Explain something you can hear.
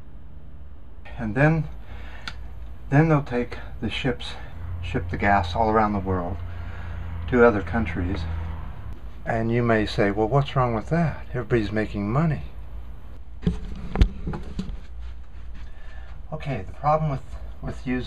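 A middle-aged man talks close by, calmly explaining.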